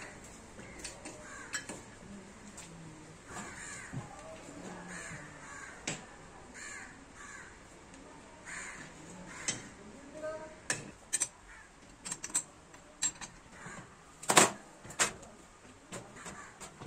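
Metal parts clank and click as a steel stand is adjusted by hand.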